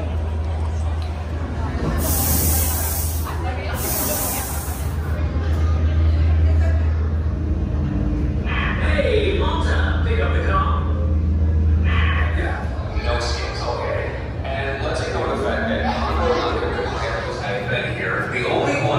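A crowd of people murmurs and chatters nearby.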